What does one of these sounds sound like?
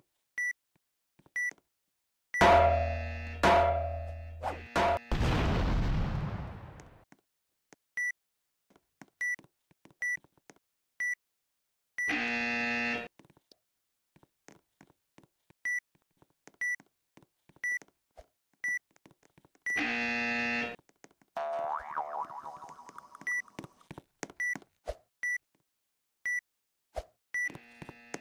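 Short footstep sounds tap steadily as a game figure walks.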